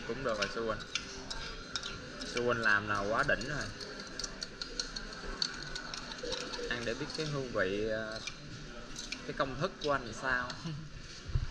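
A metal spoon stirs and clinks against a small ceramic cup.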